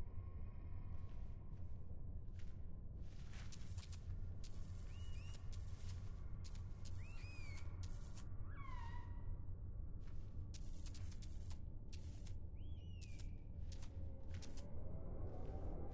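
Short electronic clicks and chirps sound again and again.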